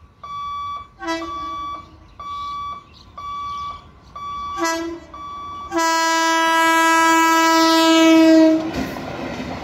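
A train horn blares, in short blasts and then one long blast.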